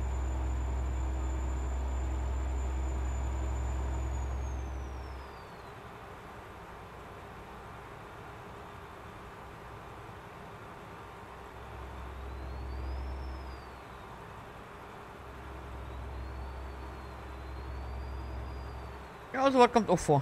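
A truck engine drones low, rising and falling in waves.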